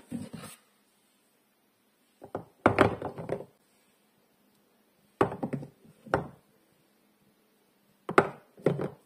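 Bars of soap knock and clack against each other close up.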